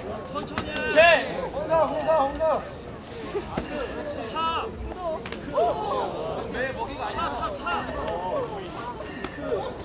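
Fighters' feet thud and scuff on a mat.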